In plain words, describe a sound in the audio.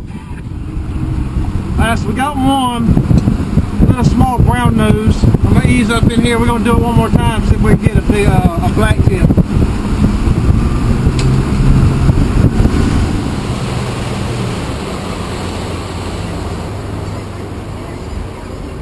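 A boat's engine roars at speed.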